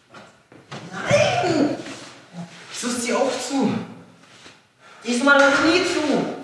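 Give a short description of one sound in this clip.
A young man speaks loudly nearby.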